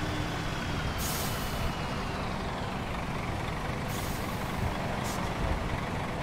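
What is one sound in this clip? Air brakes hiss in short bursts.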